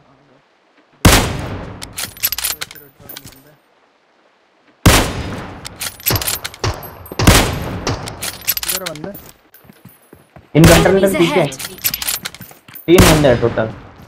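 A sniper rifle fires loud single shots with a ringing echo.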